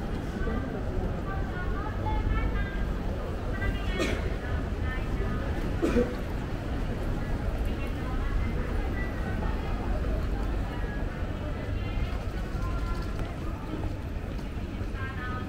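A busy street hum carries on outdoors.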